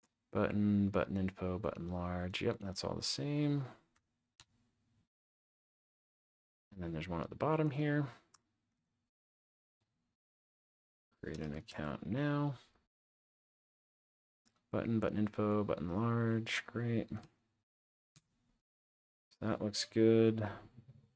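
A young man speaks calmly and closely into a microphone, in short bursts with pauses.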